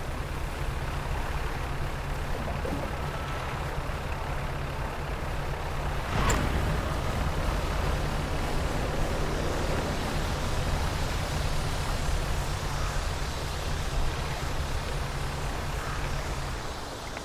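Water splashes and swishes against a moving boat's hull.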